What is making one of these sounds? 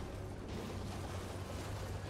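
A horse gallops, splashing through water.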